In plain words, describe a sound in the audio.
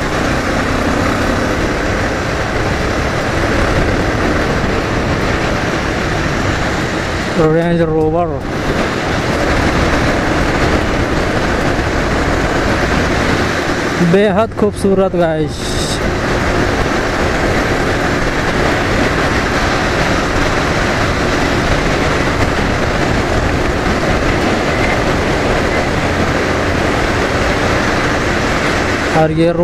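Wind rushes loudly past as the motorcycle rides.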